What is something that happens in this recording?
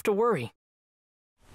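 A young man speaks briefly.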